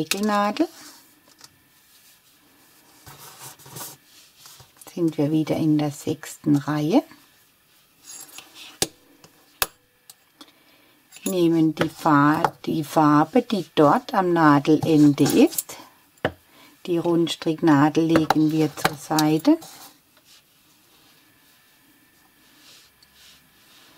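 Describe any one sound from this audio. A metal Tunisian crochet hook softly rustles through wool yarn.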